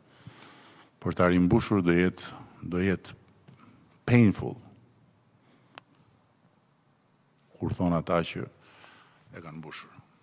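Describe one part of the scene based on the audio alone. An older man speaks slowly and deliberately into a microphone, with long pauses.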